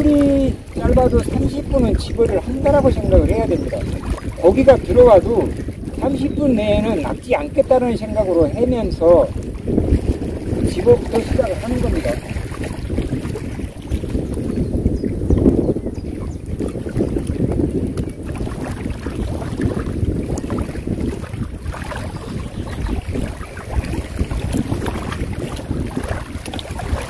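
Wind blows across open water outdoors.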